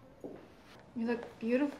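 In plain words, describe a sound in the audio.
A young woman speaks with animation nearby.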